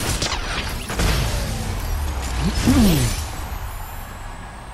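A triumphant game fanfare plays loudly.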